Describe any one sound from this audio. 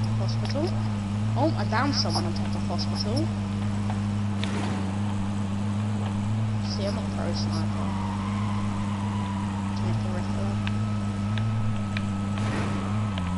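A vehicle engine drones steadily as an off-road truck drives along.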